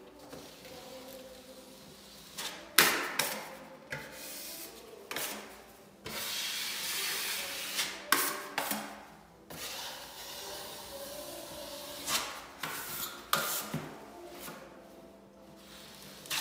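A putty knife scrapes wet filler across a wall.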